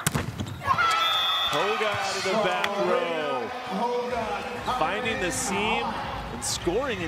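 Young women shout and cheer excitedly close by.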